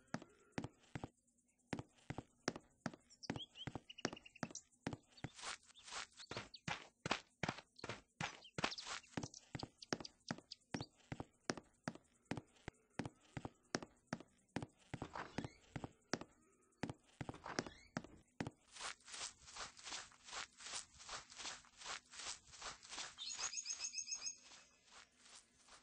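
Footsteps tap quickly and steadily.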